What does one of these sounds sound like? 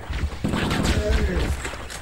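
A plasma weapon fires with zapping shots.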